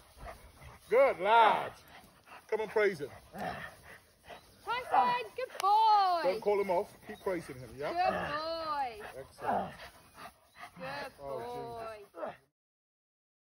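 A man speaks excitedly and encouragingly to a dog close by.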